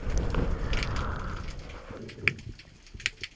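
Water surges and gurgles close by, heard underwater.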